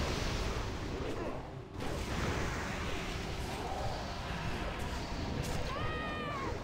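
Game spell effects crackle and boom in a busy battle.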